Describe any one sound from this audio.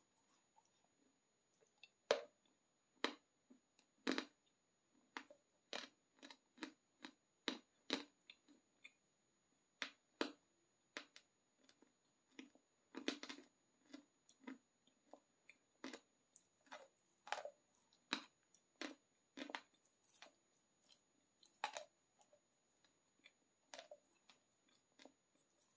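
A person crunches and chews hard chocolate close to a clip-on microphone.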